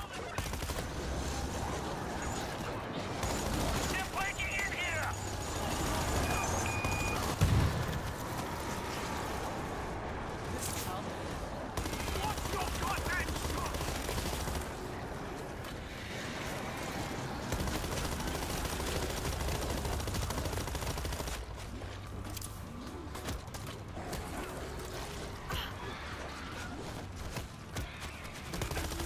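A crowd of zombies snarls and groans.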